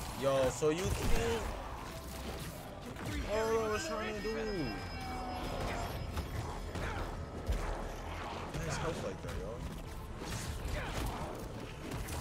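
Heavy punches and crashes thud during a fight.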